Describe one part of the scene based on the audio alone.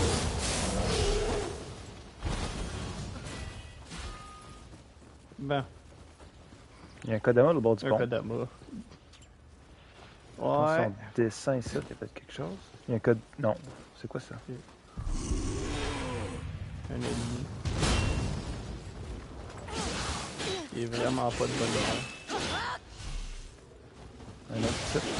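Swords clash and strike in a close fight.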